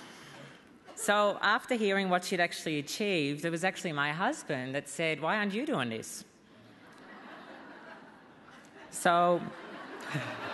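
A young woman speaks with emotion into a microphone, pausing often.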